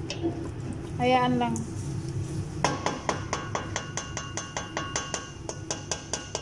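A wooden spatula scrapes and stirs inside a metal pot.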